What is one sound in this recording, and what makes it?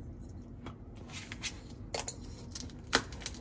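A plastic toy knife taps and scrapes against a plastic toy.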